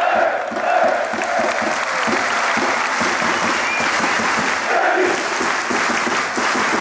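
A large crowd cheers and sings loudly in an open stadium.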